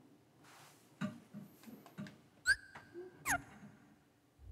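Game menu sounds click and swoosh.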